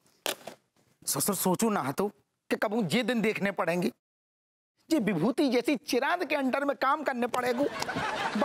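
A middle-aged man talks loudly and with animation.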